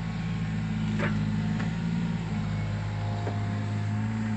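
Wood cracks and knocks as a log is gripped.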